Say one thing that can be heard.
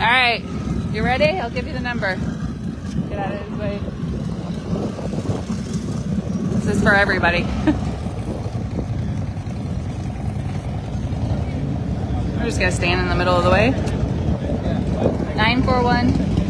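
Motorcycle engines rumble steadily nearby, outdoors.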